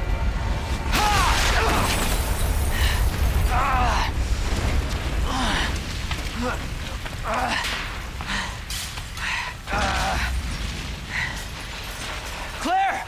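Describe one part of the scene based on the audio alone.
A man groans and gasps in pain.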